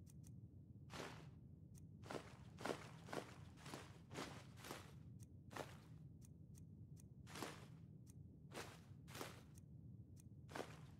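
Soft interface clicks tick one after another as items are scrolled through.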